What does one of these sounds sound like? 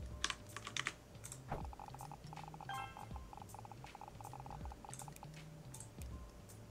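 Quick chirping game sounds tick and pop.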